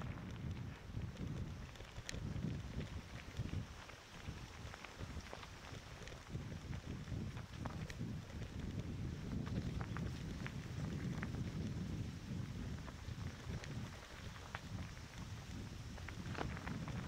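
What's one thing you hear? Tyres crunch and rattle over a rough dirt trail.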